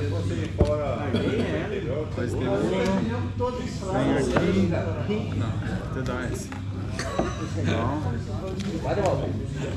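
Playing cards slap down onto a wooden table.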